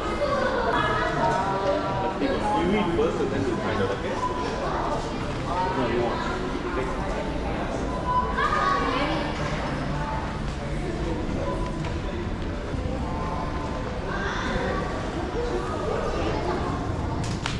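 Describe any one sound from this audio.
A crowd of men and women chatters nearby in a large echoing hall.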